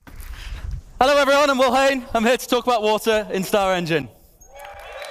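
A young man talks loudly through a microphone in a large hall.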